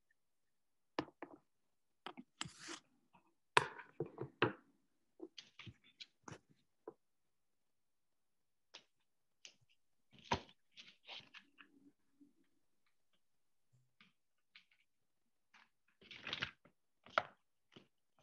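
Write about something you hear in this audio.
A young woman talks calmly through an online call.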